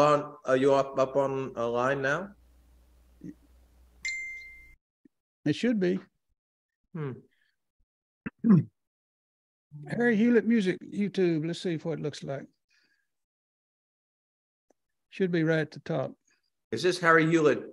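A middle-aged man speaks into a microphone over an online call, in short bursts with pauses.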